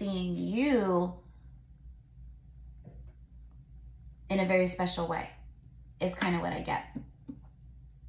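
A young woman speaks expressively, close to the microphone.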